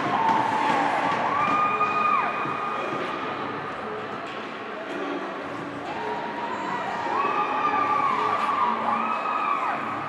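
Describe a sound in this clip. Young men cheer and shout in celebration in an echoing rink.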